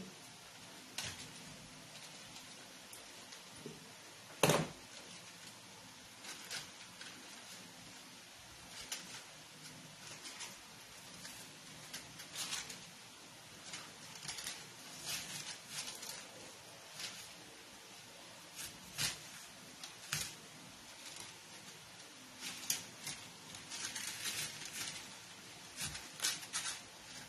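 Stiff paper leaves rustle and crinkle.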